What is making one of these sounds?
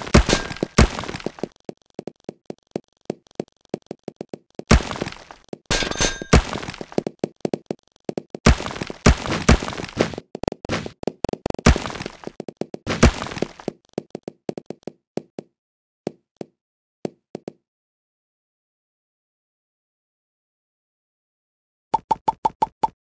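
Game balls clatter and pop in rapid bursts.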